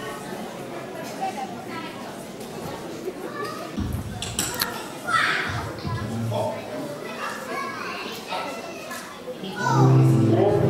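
A group of adults talks and chatters nearby.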